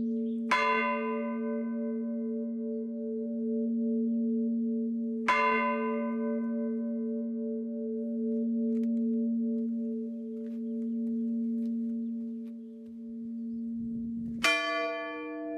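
A large bell is struck and rings out, its deep tone humming on and slowly fading.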